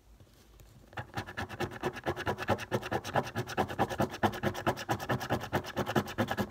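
A coin scratches rapidly across a scratch card.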